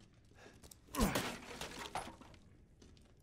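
A wooden crate smashes apart with a loud crack.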